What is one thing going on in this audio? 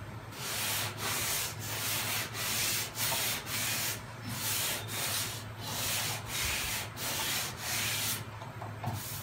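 Sandpaper rasps against a car panel in quick, even strokes.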